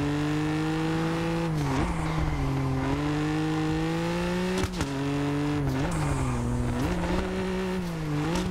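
A car engine roars steadily, its pitch dropping with each gear change.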